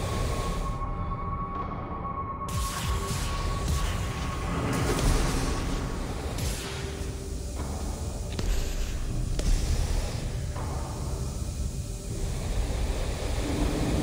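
Jet thrusters hiss and rumble steadily.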